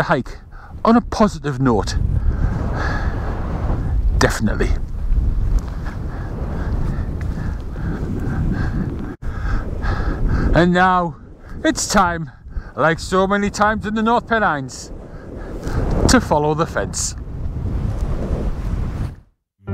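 Wind blusters against the microphone.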